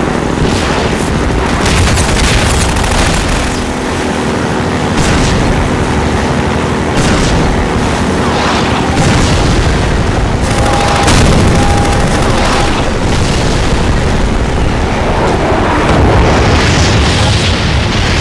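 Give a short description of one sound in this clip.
Water splashes and sprays against a hull.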